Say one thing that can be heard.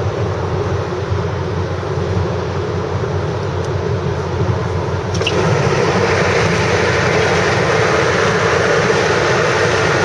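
Tyres roar steadily on the road surface, growing louder midway.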